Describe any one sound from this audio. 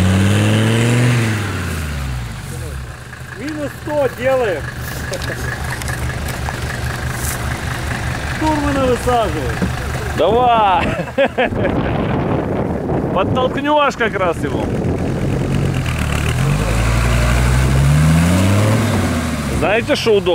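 An off-road vehicle's engine growls and revs up and down.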